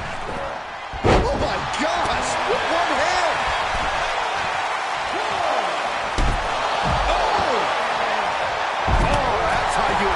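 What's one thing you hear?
Heavy thuds sound as wrestlers slam onto the ring mat.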